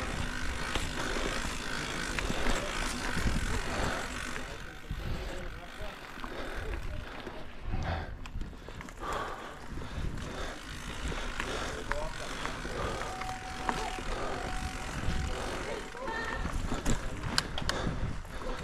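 A bicycle rattles and clicks over bumps.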